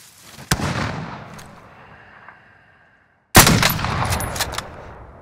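A rifle fires loud, booming shots that echo away.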